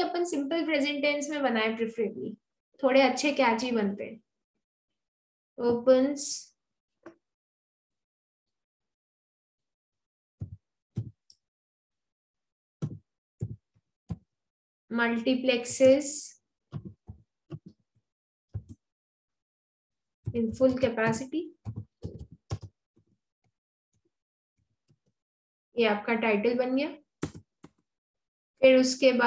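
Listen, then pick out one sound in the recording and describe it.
A young woman speaks calmly into a microphone, in short bursts with pauses.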